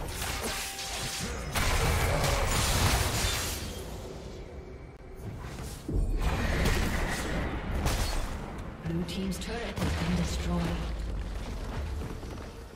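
Magic blasts and hits crash and crackle during a fight.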